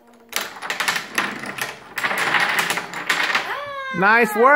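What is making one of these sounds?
Wooden dominoes clatter rapidly as they topple in a chain.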